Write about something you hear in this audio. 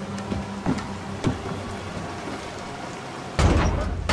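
A heavy metal hatch clanks.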